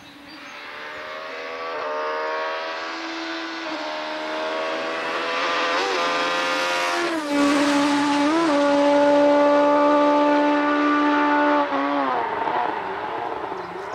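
A rally car engine roars and revs hard as the car speeds closer.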